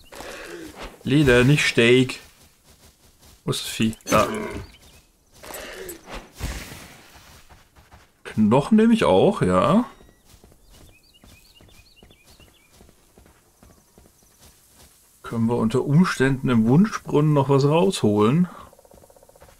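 A man talks casually into a close microphone, in bursts with pauses.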